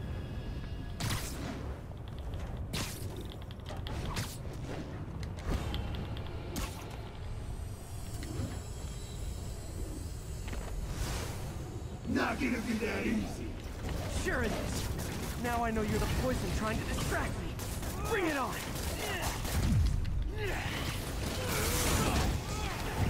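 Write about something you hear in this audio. Whooshing swings and sharp impacts crack now and then.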